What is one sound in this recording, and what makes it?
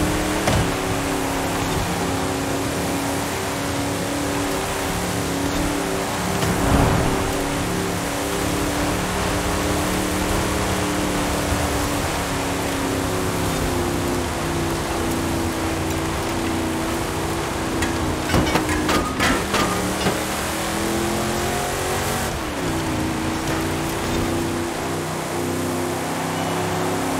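A truck engine roars steadily, rising and falling in pitch as it shifts gears.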